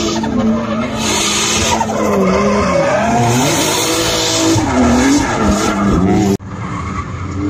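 Car tyres screech on asphalt.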